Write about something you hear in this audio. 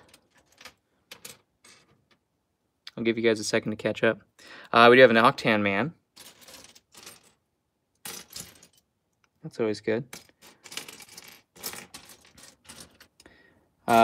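Small plastic pieces clatter and click as hands rummage through a pile.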